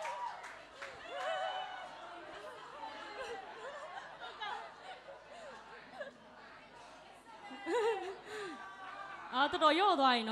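A crowd of young people chatters and murmurs in a large room.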